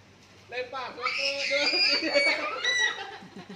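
A young girl squeals and laughs excitedly.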